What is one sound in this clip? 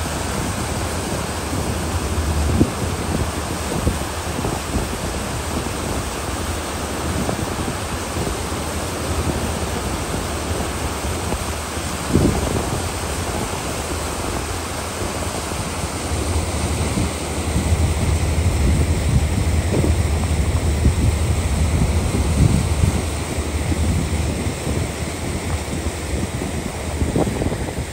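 Water churns and rushes behind a moving boat.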